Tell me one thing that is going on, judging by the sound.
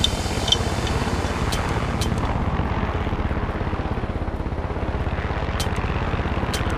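A helicopter engine whines steadily.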